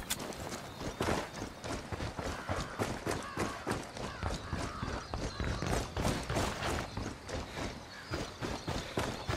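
Footsteps crunch on dirt at a steady walking pace.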